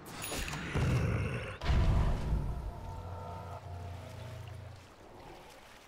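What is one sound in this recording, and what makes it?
Game spell effects whoosh and rumble loudly.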